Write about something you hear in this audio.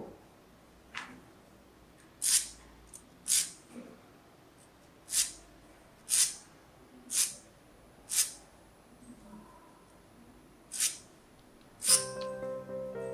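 A file rasps against the edge of a metal part in short, sharp strokes.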